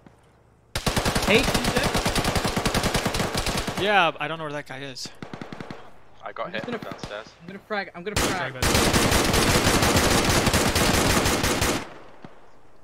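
A rifle fires in long rapid bursts.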